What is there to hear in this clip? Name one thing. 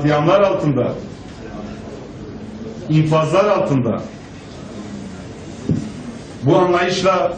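A man speaks in short bursts through microphones, with pauses between phrases.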